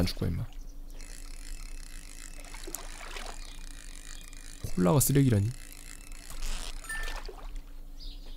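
A fishing reel whirs steadily as a line is reeled in.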